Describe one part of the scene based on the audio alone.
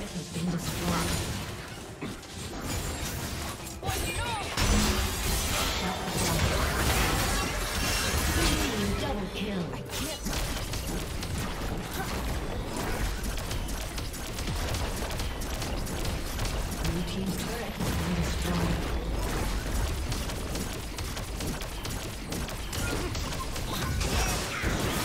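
Spell effects whoosh and clash in a busy video game battle.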